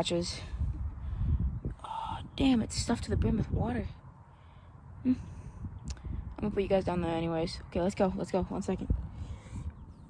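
A boy talks close to the microphone.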